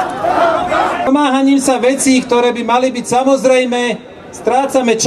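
A man speaks forcefully through a loudspeaker.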